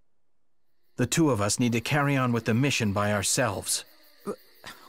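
A young man speaks firmly and at length.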